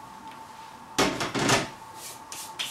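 Dishes clatter on a counter.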